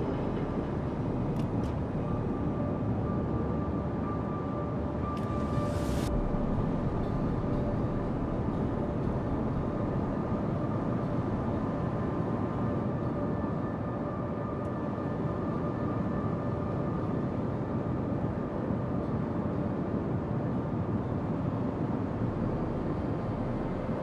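Water rushes and splashes against a ship's hull.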